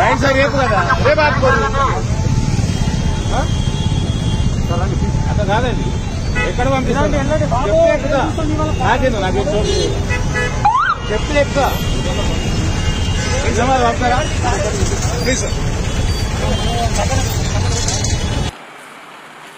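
A crowd murmurs outdoors in a noisy street.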